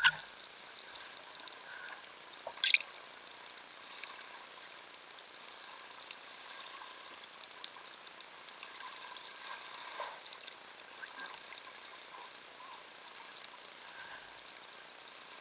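Water hisses softly and steadily underwater.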